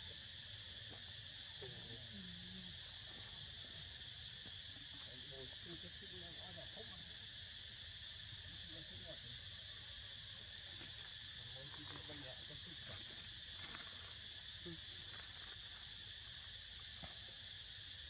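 A dry leaf crinkles softly in a small monkey's hands.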